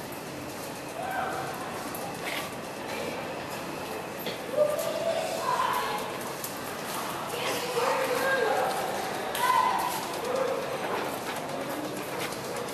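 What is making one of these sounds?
A toddler babbles and squeals nearby.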